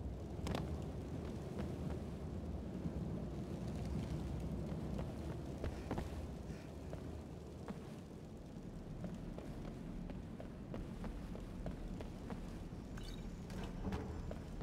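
Flames crackle and roar softly.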